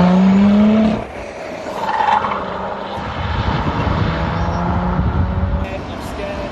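A car engine hums steadily as it drives off into the distance.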